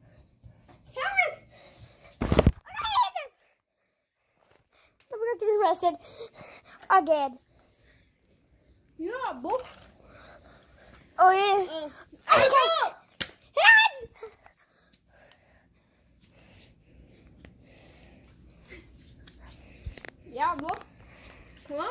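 A young boy talks excitedly, close up.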